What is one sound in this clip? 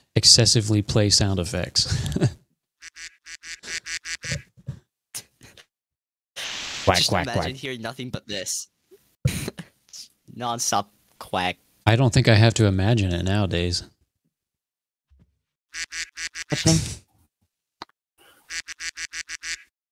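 A man laughs loudly into a close microphone.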